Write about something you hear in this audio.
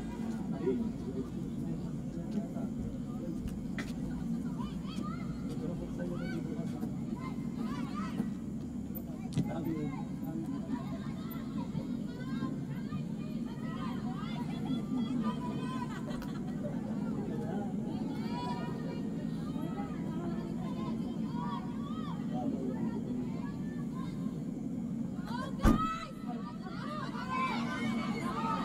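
Young women shout to each other outdoors.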